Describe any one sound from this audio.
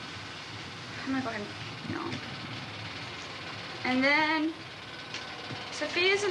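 A young woman speaks in a high, lively voice close by.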